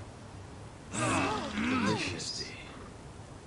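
Several men call out cheerfully together.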